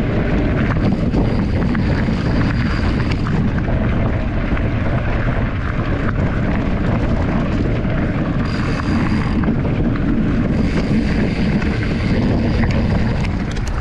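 Bicycle tyres crunch and rattle over a gravel trail.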